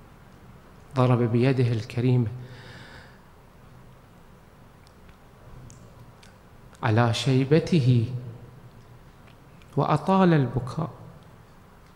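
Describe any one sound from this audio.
A man speaks slowly and calmly into a microphone, in short phrases with long pauses.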